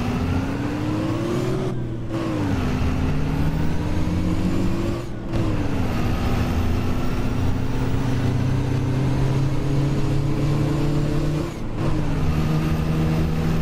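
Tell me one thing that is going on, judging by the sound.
A bus engine hums and rises in pitch as it speeds up, dropping with each gear change.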